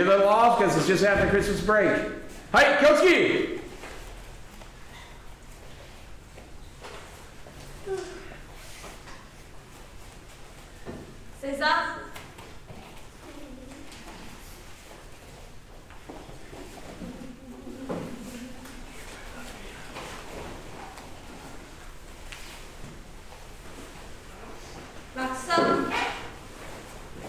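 A man shouts short commands in an echoing room.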